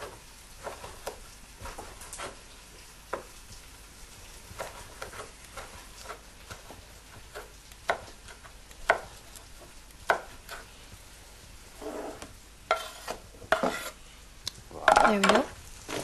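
A knife chops on a wooden board with quick knocks.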